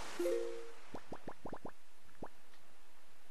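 Short blips sound quickly one after another as a menu cursor moves.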